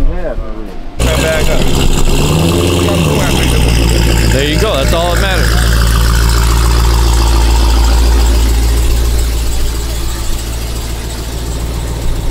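A powerful car engine idles with a deep, loud rumble.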